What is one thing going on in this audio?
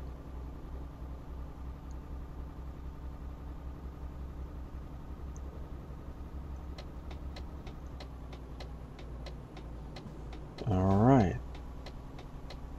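A truck engine hums steadily while driving.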